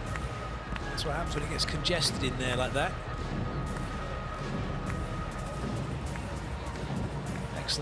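A volleyball is spiked with a sharp slap.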